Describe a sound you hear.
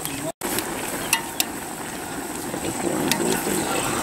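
A metal ladle scrapes and stirs inside a pot.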